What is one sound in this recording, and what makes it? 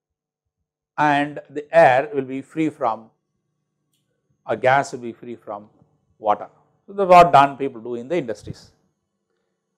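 An elderly man speaks calmly and clearly into a close microphone, in short phrases with pauses.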